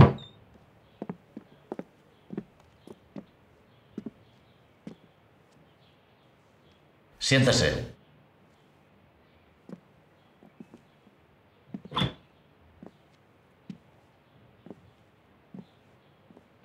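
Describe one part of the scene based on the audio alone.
Footsteps knock on a hard floor.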